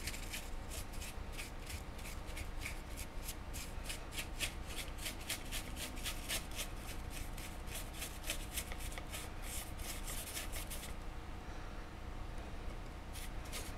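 A brush scratches and taps rapidly on a hard surface.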